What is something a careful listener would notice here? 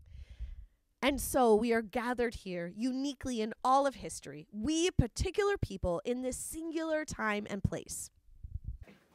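A woman speaks steadily and clearly into a microphone, reading out.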